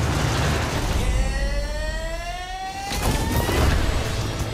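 A car engine revs and rises in pitch.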